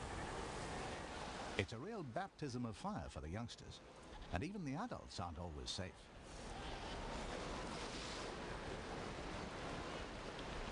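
Waves wash steadily against the shore.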